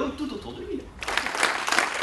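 A man speaks to an audience.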